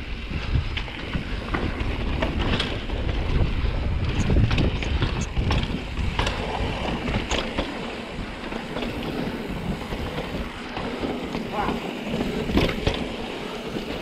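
A bike frame rattles and clanks over bumps.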